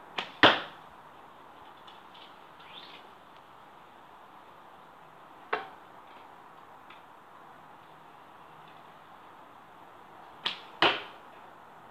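Arrows thud sharply into a straw target, a few seconds apart.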